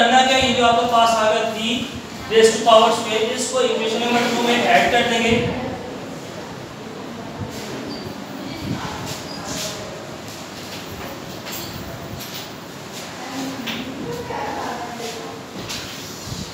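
A man speaks clearly in a lecturing tone, close by, with pauses.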